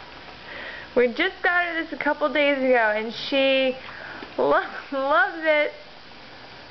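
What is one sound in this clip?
A rubber toy squeaks repeatedly as a dog chews it.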